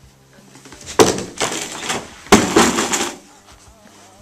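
A boy thumps down onto the floor.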